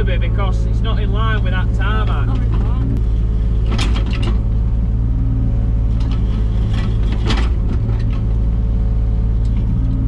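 A digger's diesel engine rumbles steadily close by.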